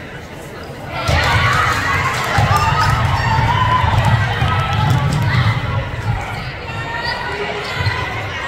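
A crowd of spectators cheers and shouts from the stands.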